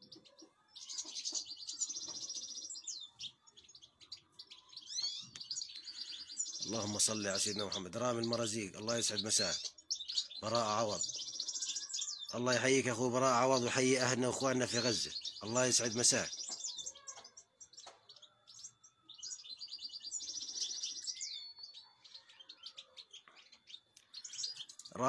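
Birds chirp and twitter in quick, high calls nearby.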